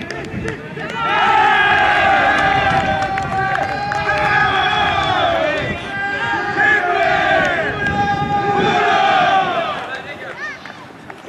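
A group of young men shout and cheer together outdoors.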